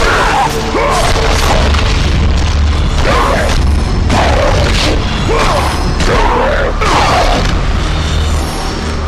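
Blades slash and strike with sharp impacts.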